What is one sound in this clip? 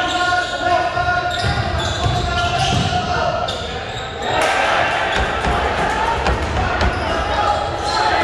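A basketball bounces on a hard court in a large echoing gym.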